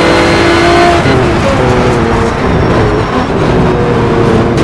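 A V12 race car engine downshifts under braking, its pitch falling.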